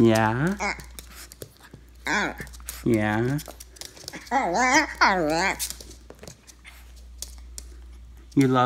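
A small dog yelps and whines close by.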